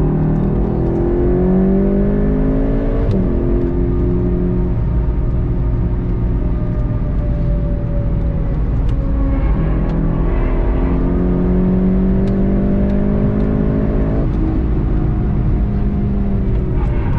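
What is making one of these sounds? Wind and tyre noise rush steadily past a fast-moving car.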